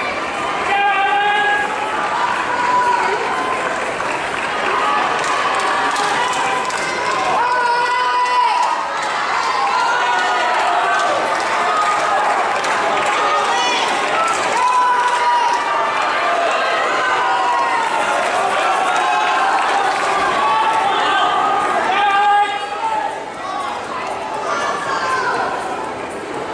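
Spectators cheer and shout across an open stadium.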